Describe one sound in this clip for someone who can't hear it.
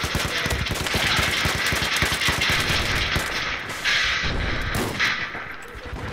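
Rapid gunfire rattles with loud bursts.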